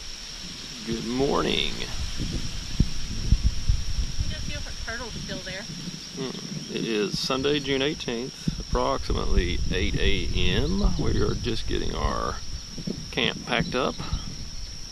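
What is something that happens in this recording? A young woman talks casually nearby.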